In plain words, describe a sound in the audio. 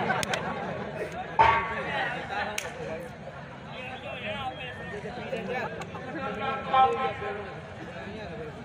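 Music plays loudly through loudspeakers.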